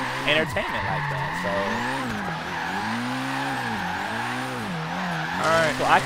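A car engine revs high and rises and falls in pitch.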